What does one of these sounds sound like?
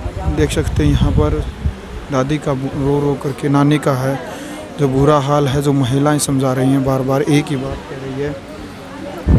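A woman wails and cries loudly nearby.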